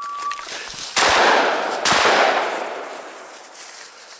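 A shotgun fires twice, booming and echoing through the woods.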